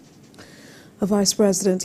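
A young woman speaks calmly and clearly into a microphone, close by.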